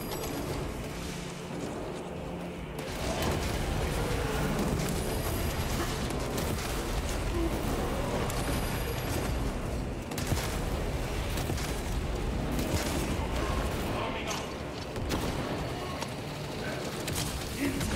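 Gunfire rattles rapidly in a battle.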